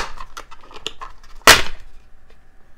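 Plastic clicks and snaps as a hard drive enclosure is pried apart.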